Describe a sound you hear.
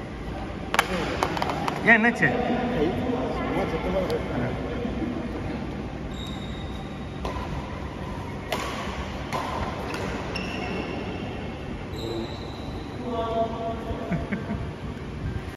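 Young men call out and talk in a large echoing hall.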